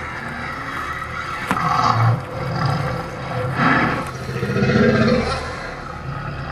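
A large dinosaur roars loudly.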